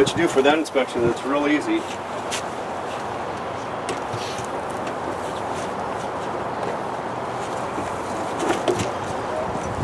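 Wooden hive frames knock and scrape.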